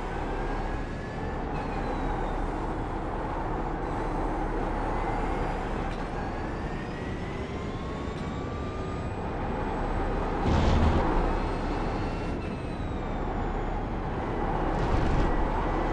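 A racing car engine roars steadily, rising in pitch and dropping with each gear change.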